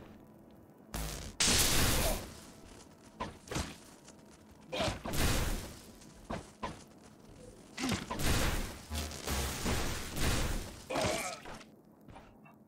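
Magic spells crackle and whoosh in short bursts.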